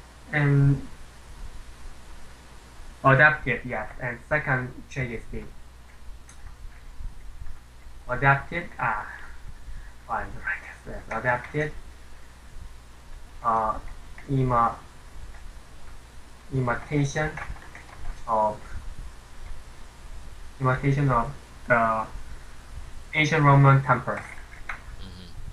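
A young man speaks calmly into a microphone, heard as over an online call.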